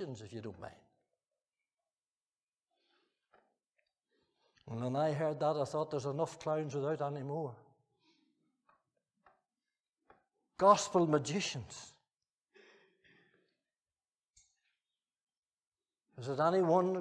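An elderly man speaks slowly and deliberately through a microphone, with long pauses.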